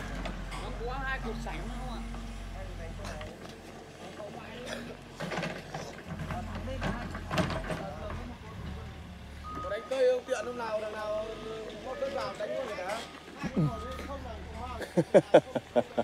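A diesel excavator engine rumbles close by.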